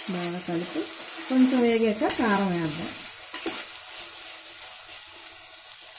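A metal spoon scrapes and stirs vegetables in a metal pot.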